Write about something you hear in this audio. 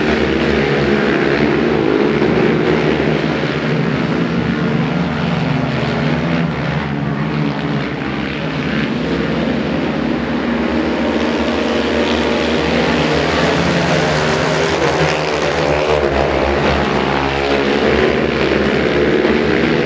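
Several quad bike engines roar loudly as they race around an outdoor track.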